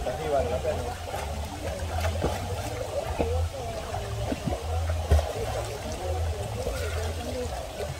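Water splashes as a swimmer kicks on her back.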